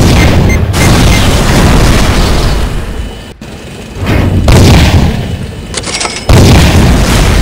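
Explosions rumble and crash.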